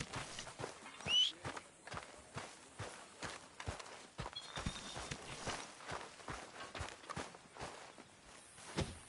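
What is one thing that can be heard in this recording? Footsteps thud on grass.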